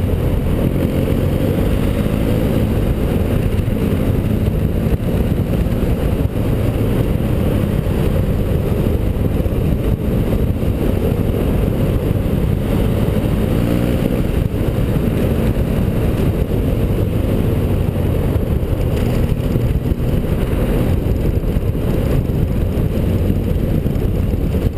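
An adventure motorcycle engine drones while cruising.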